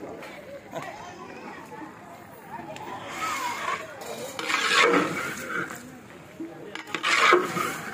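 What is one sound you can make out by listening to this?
A metal ladle scrapes and stirs through a wet, leafy mix in a large metal pot.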